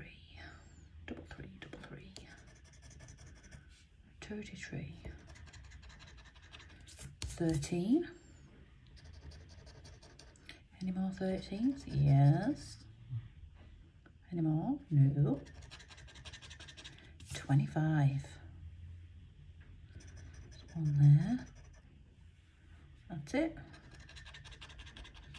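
A tool scratches across a card with a fast, rough rasping.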